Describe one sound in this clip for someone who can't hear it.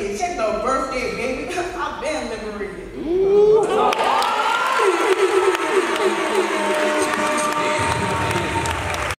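A young woman sings out loud in a large echoing hall.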